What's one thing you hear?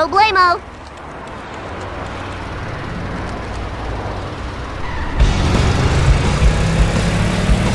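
An engine hums and grows louder as a small vehicle drives off.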